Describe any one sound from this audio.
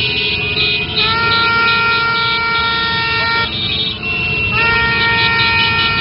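Motorcycle horns honk loudly and repeatedly.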